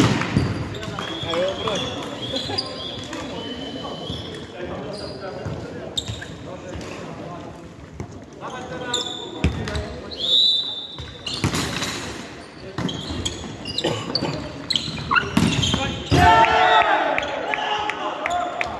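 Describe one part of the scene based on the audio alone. Men shout and call out to each other during play.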